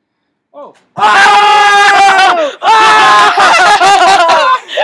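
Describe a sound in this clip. A young man screams loudly and excitedly close by.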